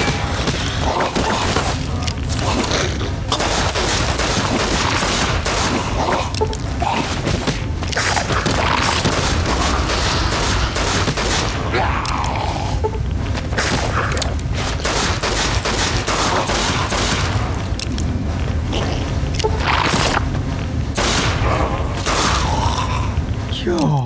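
A revolver fires loud, sharp shots again and again.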